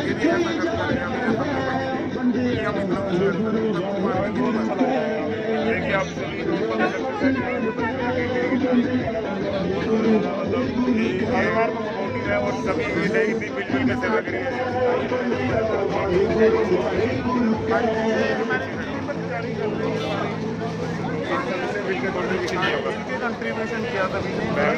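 A young man speaks with animation into a handheld microphone close by.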